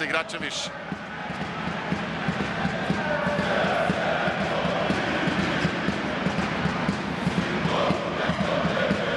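A large crowd cheers and chants in a big echoing hall.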